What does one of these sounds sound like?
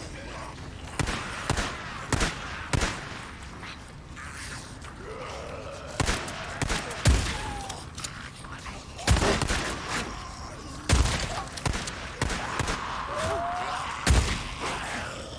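Gunshots bang loudly and echo.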